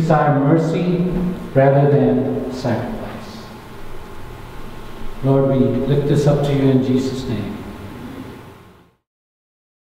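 An elderly man sings through a microphone.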